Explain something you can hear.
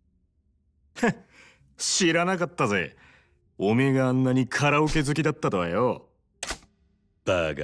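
A man speaks calmly and with a short laugh, close by.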